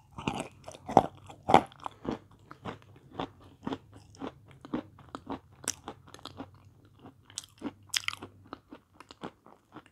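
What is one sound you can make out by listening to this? A woman chews and smacks her lips loudly, close to a microphone.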